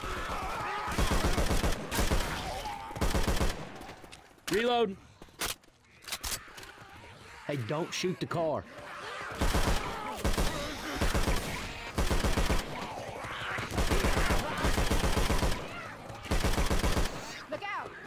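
Automatic gunfire rattles in short, rapid bursts.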